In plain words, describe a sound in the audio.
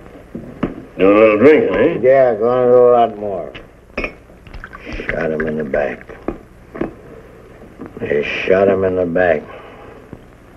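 A man speaks gruffly in a deep voice.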